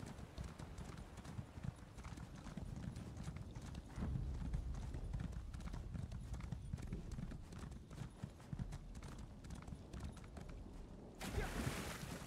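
A horse gallops with heavy hoofbeats.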